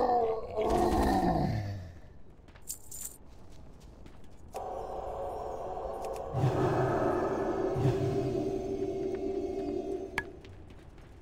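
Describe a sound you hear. Blows and spell effects crackle in a fantasy fight.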